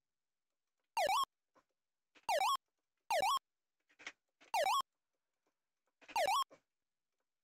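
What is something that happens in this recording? Short chiptune sound effects chirp and swoop repeatedly.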